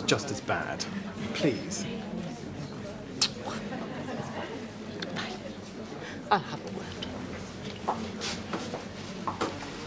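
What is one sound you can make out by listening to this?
A middle-aged woman speaks sharply, close by.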